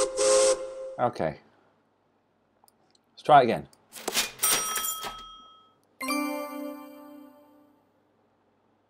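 Digital game chimes and jingles play.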